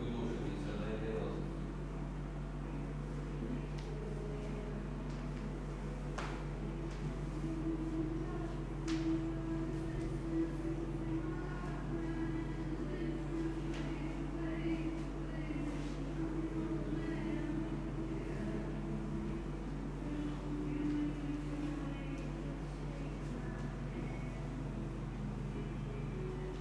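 Feet shuffle and step on a rubber floor.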